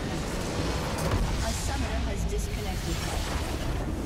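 A large crystal shatters with a booming blast.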